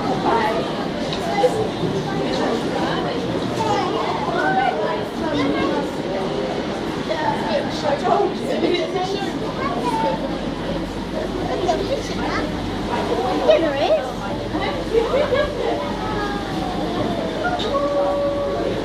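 A crowd of children and adults chatter in an echoing indoor hall.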